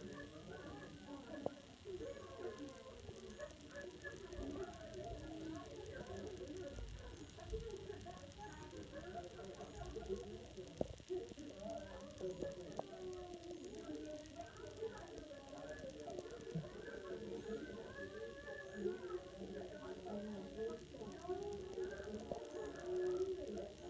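A group of adults chatter with animation, heard through a television speaker.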